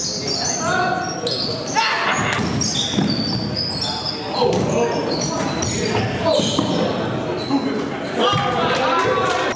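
Basketball sneakers squeak on a hardwood floor in an echoing gym.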